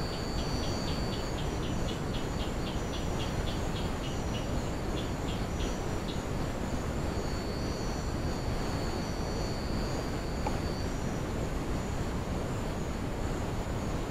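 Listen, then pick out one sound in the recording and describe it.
A small animal rustles through dry leaves on the ground.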